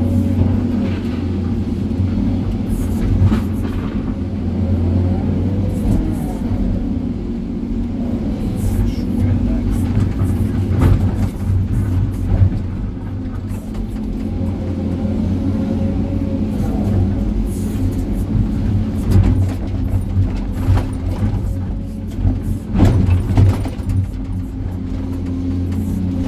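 Hydraulics whine as the excavator arm moves.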